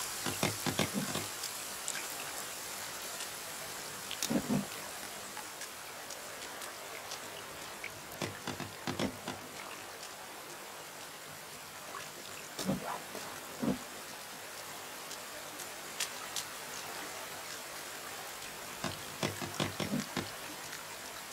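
Heavy wooden logs thud as they are set in place.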